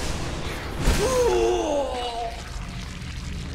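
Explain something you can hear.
A creature lets out a wavering shriek.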